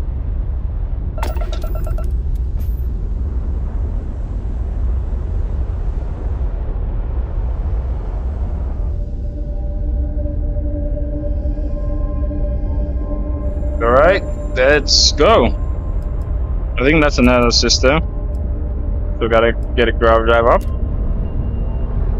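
A spaceship engine rumbles steadily and low.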